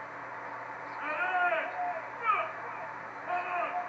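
A man shouts drill commands loudly outdoors.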